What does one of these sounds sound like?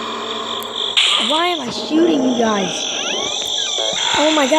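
A monster lets out a wailing growl.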